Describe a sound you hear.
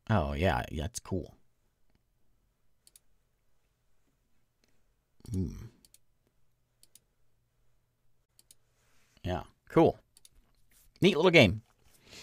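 A man speaks in short bursts through a close microphone.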